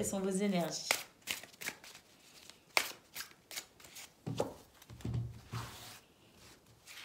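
Playing cards are shuffled and riffled by hand.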